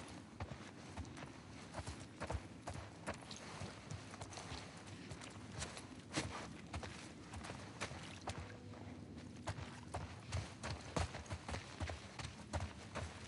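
Footsteps run quickly over hard ground and through grass.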